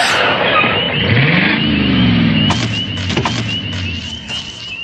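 A motorcycle engine revs.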